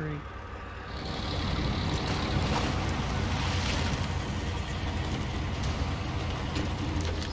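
A heavy truck engine rumbles and strains as it drives over muddy ground.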